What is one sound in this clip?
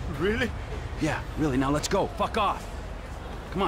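A younger man answers briefly.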